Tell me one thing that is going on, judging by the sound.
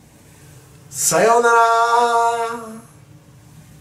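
An elderly man calls out a drawn-out greeting close to a microphone.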